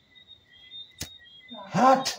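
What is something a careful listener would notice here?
A lighter clicks as it is struck.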